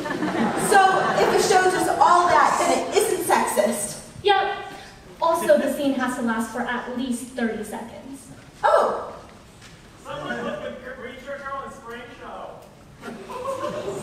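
A young woman speaks with animation on a stage, heard from a distance in an echoing hall.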